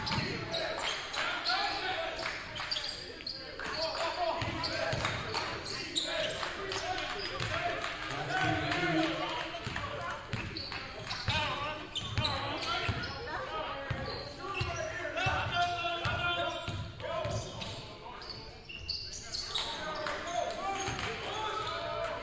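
Sneakers squeak and thud on a wooden court in a large echoing gym.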